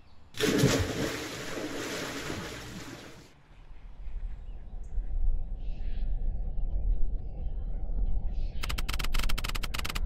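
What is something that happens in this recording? An elderly woman talks into a close microphone.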